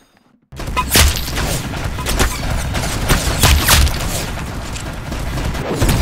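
A shotgun fires several loud shots in quick succession.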